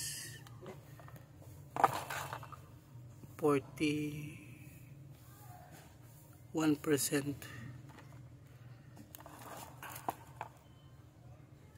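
A phone is picked up and handled with light knocks.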